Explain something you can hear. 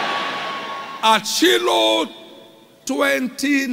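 A man preaches forcefully into a microphone, heard through loudspeakers in a large hall.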